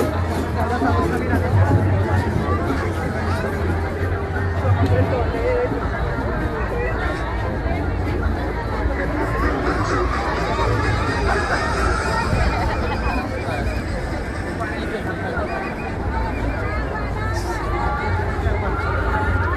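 A large crowd of marchers chatters and cheers outdoors.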